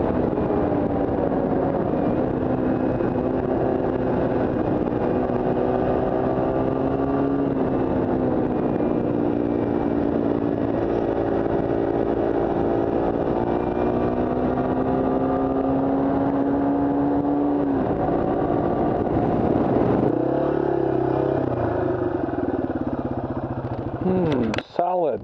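A motorcycle engine hums steadily up close while riding, rising and falling with speed.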